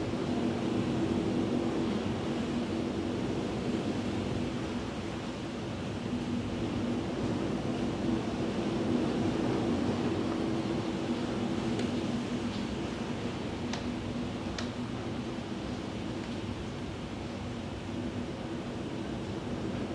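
Steady rain falls outside.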